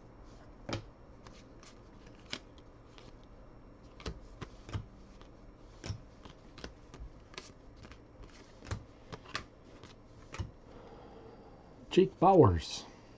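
Trading cards flick and slap softly as they are shuffled by hand.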